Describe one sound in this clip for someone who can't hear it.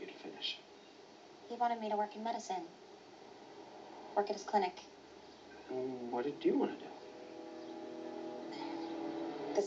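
Music plays softly from a jukebox speaker.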